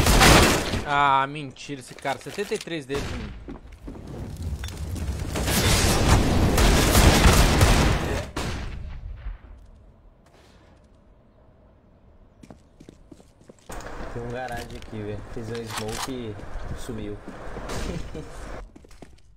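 A man talks through a close microphone.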